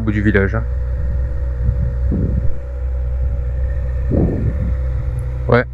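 A motorcycle engine idles with a steady low rumble close by.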